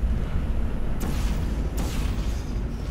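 A sci-fi gun fires with a sharp zap.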